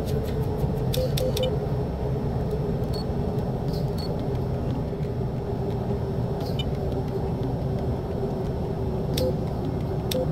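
Cockpit buttons click under a gloved finger.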